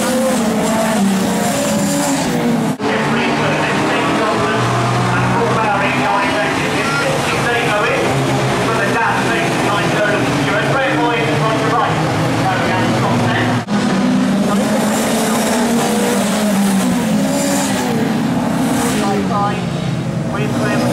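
Racing car engines roar and rev as the cars pass close by.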